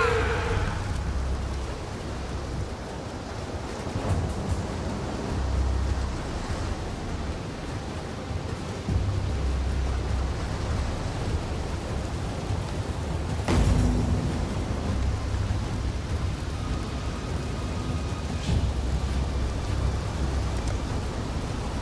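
Fires crackle and roar nearby.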